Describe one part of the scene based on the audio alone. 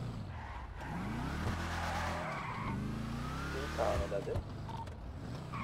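Tyres squeal as a car skids around a corner.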